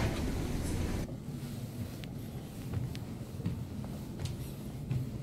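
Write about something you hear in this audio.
Footsteps thud softly on carpeted stairs.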